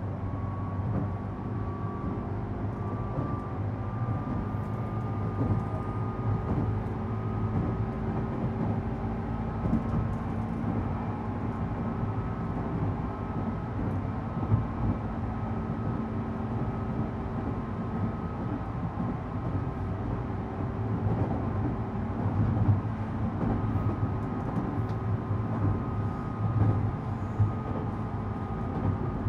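A train's motor whines with a steady high tone.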